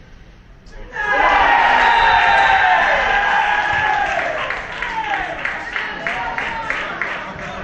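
Men nearby shout and cheer loudly.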